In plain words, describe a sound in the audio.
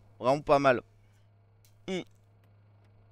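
A man speaks loudly and with animation into a microphone, in short bursts.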